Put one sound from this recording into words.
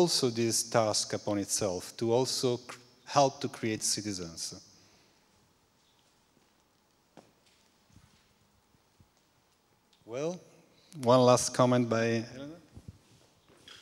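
A middle-aged man speaks with animation through a microphone in a large room.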